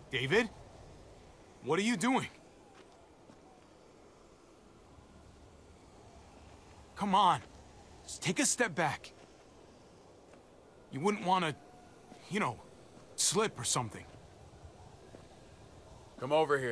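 A young man speaks nervously and pleadingly, close by.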